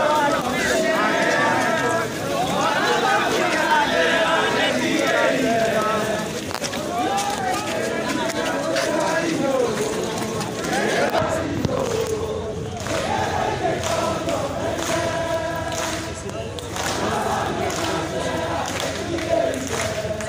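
A large crowd of men and women talks and shouts loudly all around, close by.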